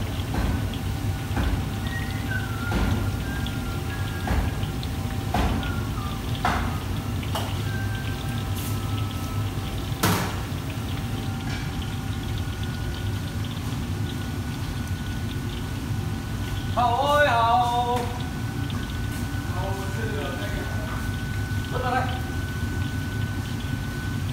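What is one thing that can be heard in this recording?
Oil sizzles and bubbles steadily in a deep pan.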